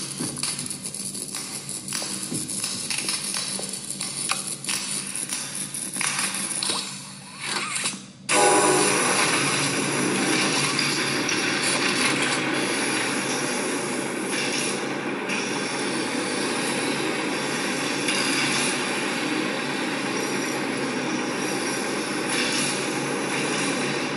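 Mechanical game sounds play from a tablet's speaker.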